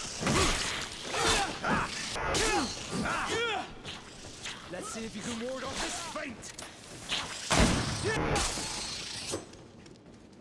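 Blades clash and strike in a loud fight.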